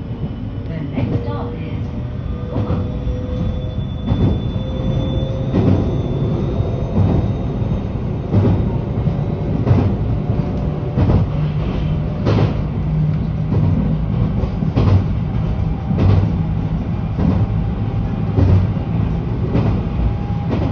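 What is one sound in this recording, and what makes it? Train wheels clack over rail joints at a regular beat.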